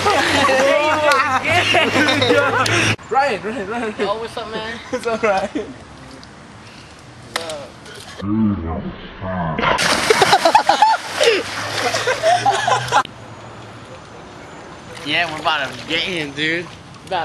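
Young men shout and laugh outdoors.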